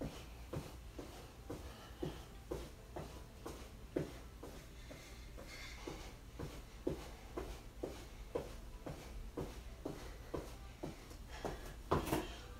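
Feet tap quickly and rhythmically on a soft mat.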